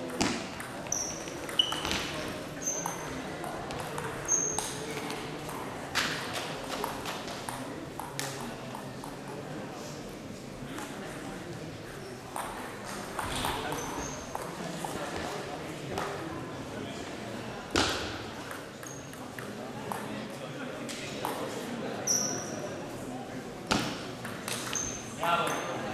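Sports shoes squeak on the hall floor.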